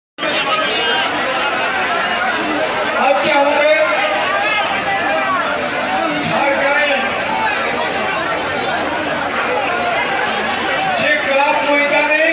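A large crowd murmurs in the background.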